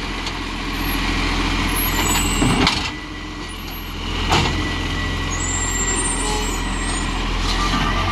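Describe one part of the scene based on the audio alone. A garbage truck pulls away with its engine revving.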